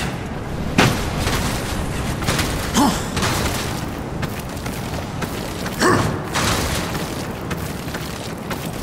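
Hands and feet scrape and thud on rough rock while climbing.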